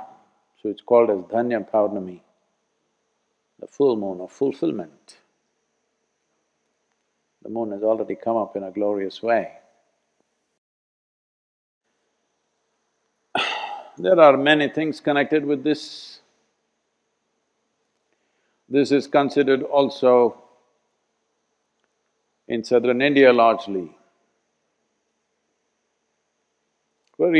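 An elderly man speaks calmly and expressively in short phrases, close to a microphone, with silent pauses between them.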